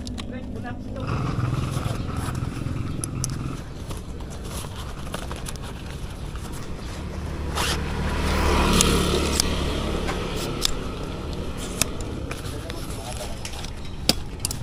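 Fabric rustles as a cloth bag is handled.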